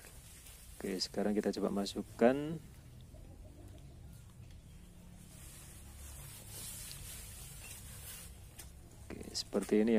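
Tent fabric rustles and flaps as it is pulled over a frame.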